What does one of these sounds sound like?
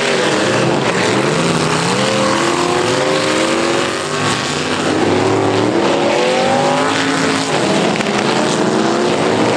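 Tyres skid and scrape on loose dirt.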